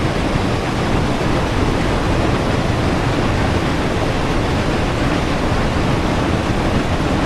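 A steam locomotive rumbles and clatters steadily along the rails.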